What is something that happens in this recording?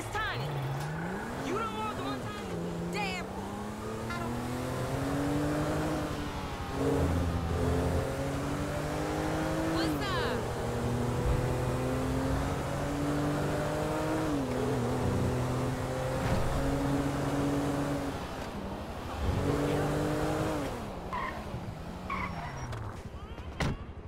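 A car engine revs up and down as it speeds along.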